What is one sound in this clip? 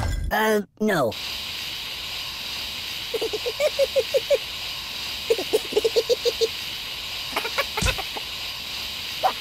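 Gas hisses steadily from nozzles.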